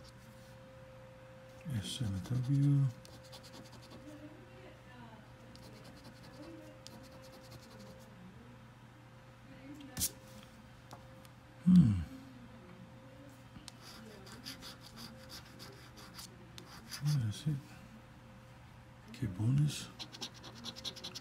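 A coin scratches rapidly across a scratch card.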